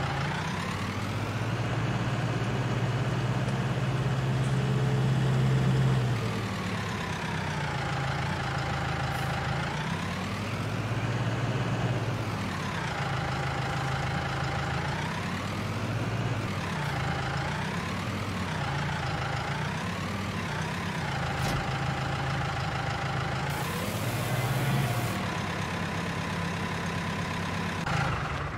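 A tractor engine hums and revs up and down.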